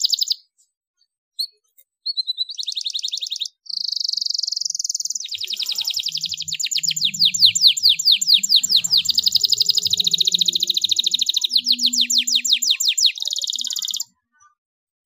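A canary sings loud, rapid trills and chirps close by.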